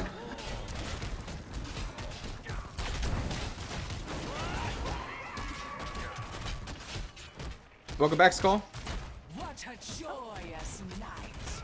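Spells crackle and blast in a fast fight.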